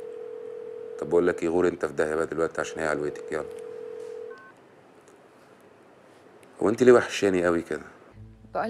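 A young man talks calmly into a phone nearby.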